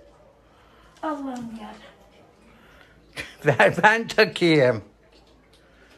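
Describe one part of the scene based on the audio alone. An elderly woman speaks loudly close by.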